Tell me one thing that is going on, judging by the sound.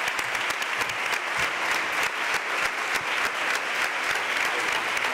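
An audience applauds steadily in a large room.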